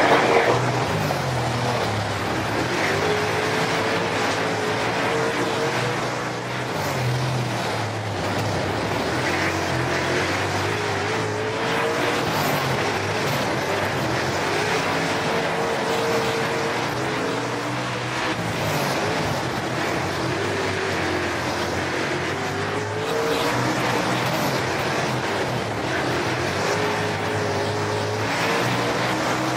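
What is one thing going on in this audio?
A race car engine roars steadily, rising and falling in pitch as it speeds up and slows down.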